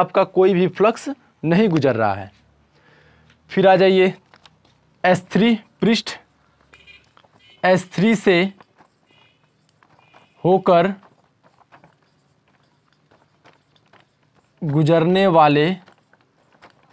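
A young man speaks calmly and clearly into a close microphone, in short bursts with pauses.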